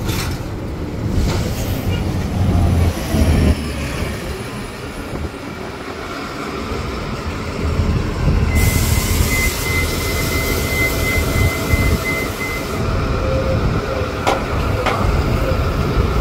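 A bus engine hums and rumbles close by.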